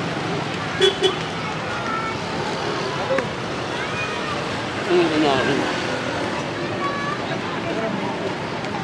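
Traffic noise rumbles steadily outdoors.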